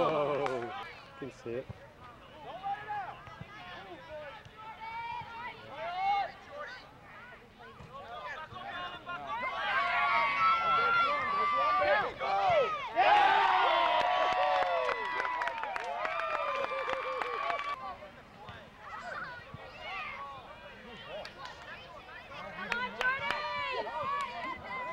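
Adults and children shout and cheer outdoors from the sidelines.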